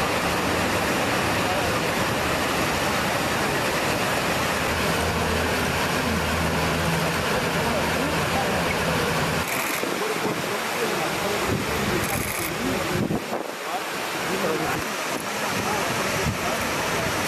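A fast river rushes loudly.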